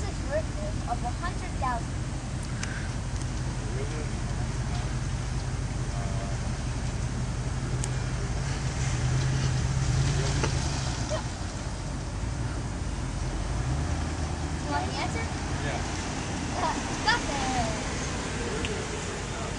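A young boy speaks with excitement.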